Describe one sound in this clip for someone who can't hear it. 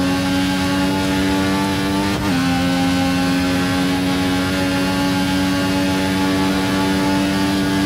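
A racing car engine screams at high revs.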